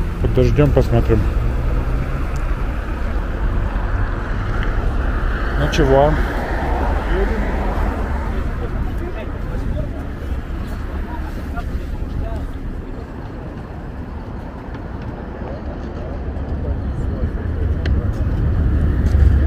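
Wind buffets the microphone with a steady low rumble.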